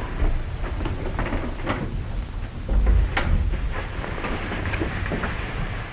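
Bedclothes rustle as a woman gets out of bed.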